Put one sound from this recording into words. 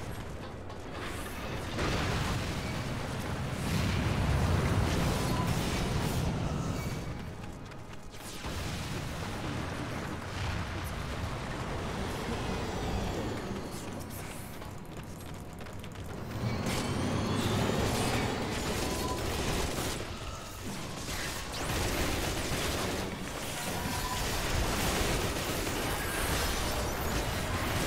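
Spell effects whoosh and crackle in a game battle.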